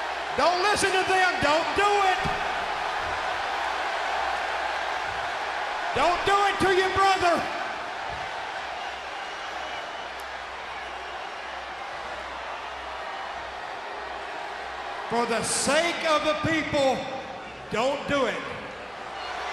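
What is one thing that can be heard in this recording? An older man shouts with animation into a microphone over loudspeakers in a large arena.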